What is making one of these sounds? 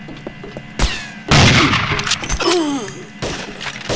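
A rifle fires a loud shot that echoes.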